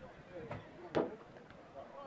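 A football thuds off a boot.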